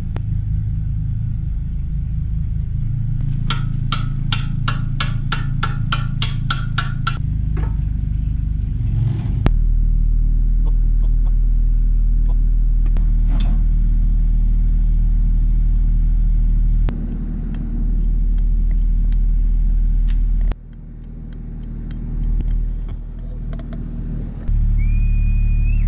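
An excavator engine idles with a steady low rumble.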